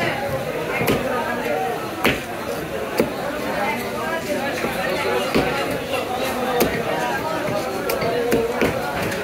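A knife knocks sharply against a chopping block.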